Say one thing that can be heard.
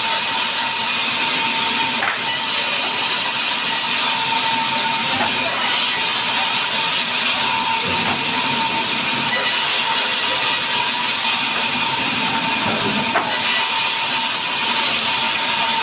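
A band saw runs with a loud, steady whine.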